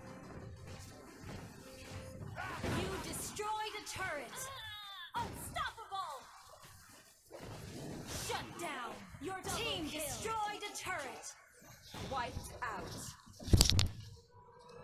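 Magic blasts and weapon hits crackle in a fast video game battle.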